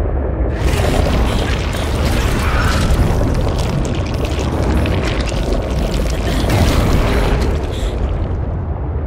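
Water rushes and churns loudly around the craft, then dies down.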